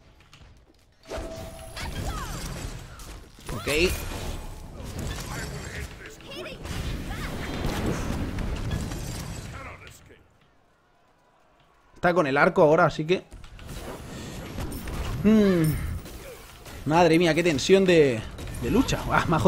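Fire spells whoosh and crackle in a game.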